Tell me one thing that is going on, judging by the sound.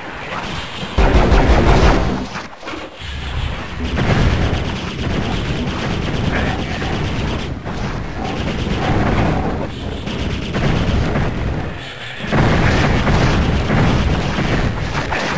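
Fiery blasts burst and roar with a heavy rumble.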